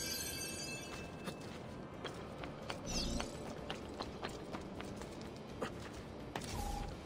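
Quick footsteps patter across roof tiles.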